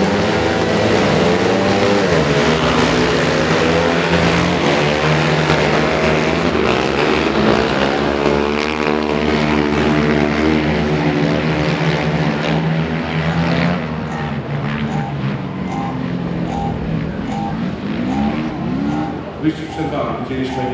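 Quad bike engines roar and rev loudly as they race around a track.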